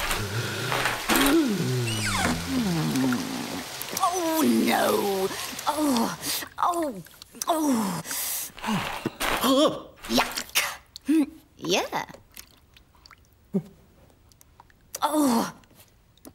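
A woman grunts and exclaims with animation.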